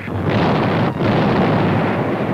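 A large gun fires with a loud boom.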